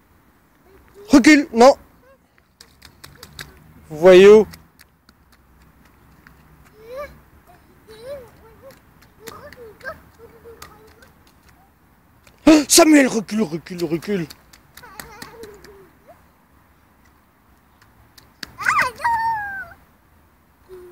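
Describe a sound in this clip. A toddler squeals and babbles loudly close by.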